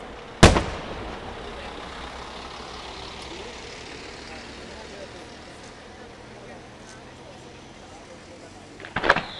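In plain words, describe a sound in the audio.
Firework sparks crackle and fizzle as they fall.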